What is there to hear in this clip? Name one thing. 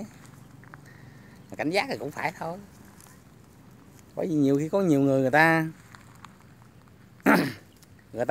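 Goats tear and chew grass.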